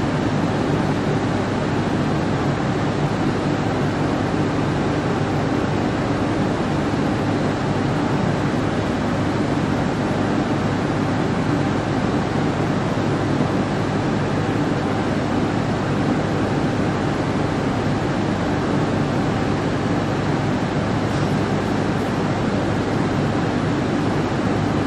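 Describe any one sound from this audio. A train idles with a steady low hum in an echoing underground space.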